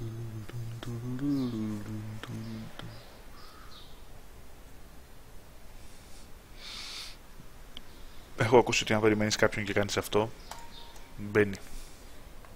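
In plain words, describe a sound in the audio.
A man talks casually and close into a microphone.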